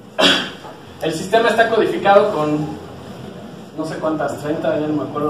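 A man speaks with animation to a small audience.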